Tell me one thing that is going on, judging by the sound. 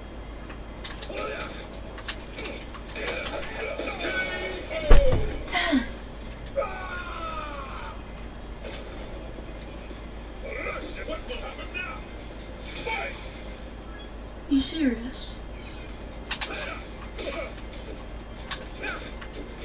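Fighting game punches and kicks land with sharp thuds.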